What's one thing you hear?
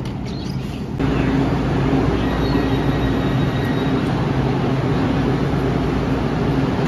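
A light rail train rumbles and hums loudly in an echoing underground station.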